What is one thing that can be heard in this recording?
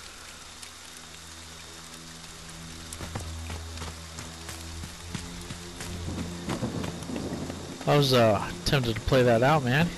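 Footsteps hurry over leaves and twigs on a forest floor.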